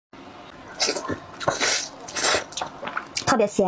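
A young woman slurps noodles loudly, close up.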